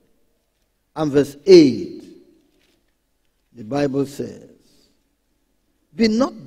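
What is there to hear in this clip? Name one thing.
A man speaks slowly and earnestly into a microphone, with pauses between phrases.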